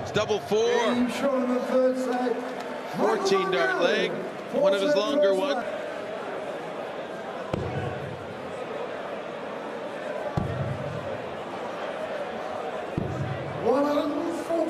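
A large crowd sings and chants in a big echoing hall.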